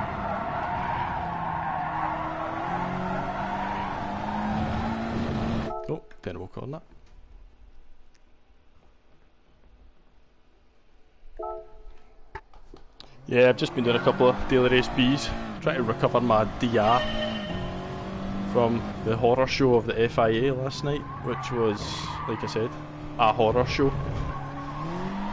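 A racing car engine roars and shifts gears.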